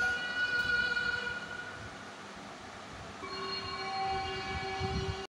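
A small child's bare feet pat on a hard floor.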